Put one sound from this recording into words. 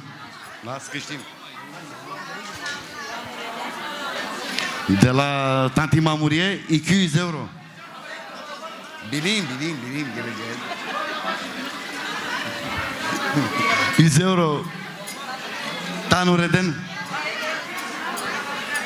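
A crowd of guests chatters in the background.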